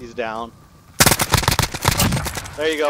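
Rapid gunshots crack in a quick burst.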